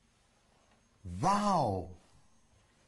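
An elderly man speaks briefly.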